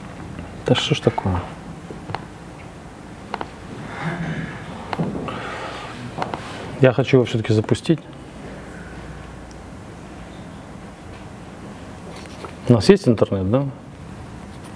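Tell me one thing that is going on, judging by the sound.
A man speaks calmly through a microphone in short bursts.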